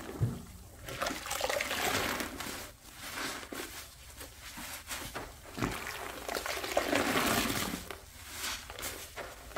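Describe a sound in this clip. A wet sponge squelches as it is squeezed out.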